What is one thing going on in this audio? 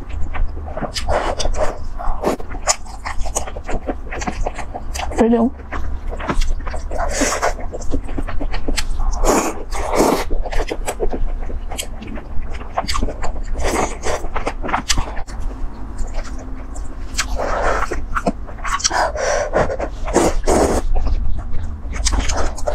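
A young woman chews food wetly, close up.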